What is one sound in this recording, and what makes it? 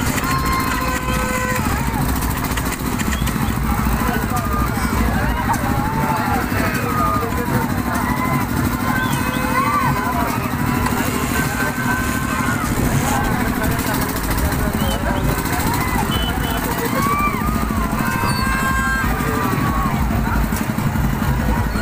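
A crowd of children and adults chatters and shouts nearby outdoors.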